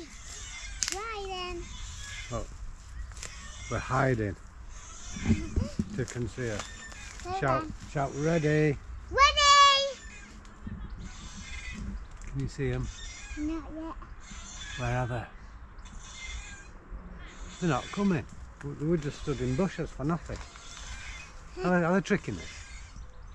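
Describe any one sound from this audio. A young child chatters and squeals in a high voice.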